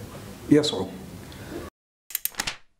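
A man speaks calmly into microphones.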